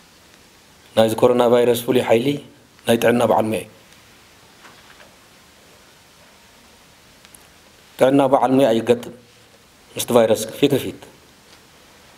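A middle-aged man speaks calmly into microphones, in short phrases with pauses.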